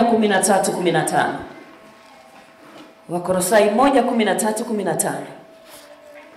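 A woman speaks with animation through a microphone and loudspeakers in a large room.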